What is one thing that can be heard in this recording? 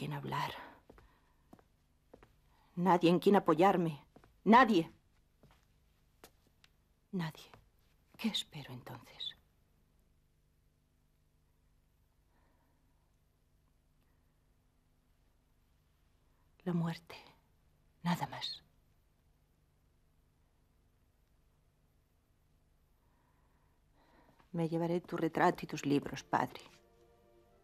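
A middle-aged woman speaks in short, tense phrases close by, with long pauses between.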